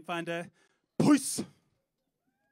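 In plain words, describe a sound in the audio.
A cymbal crashes once.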